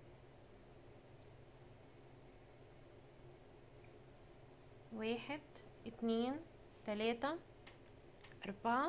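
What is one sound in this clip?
A crochet hook softly scrapes and clicks as yarn is pulled through loops.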